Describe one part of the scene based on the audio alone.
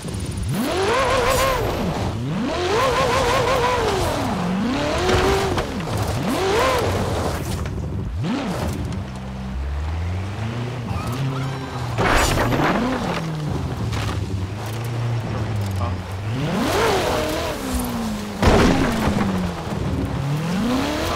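A sports car engine revs up and down sharply, over and over.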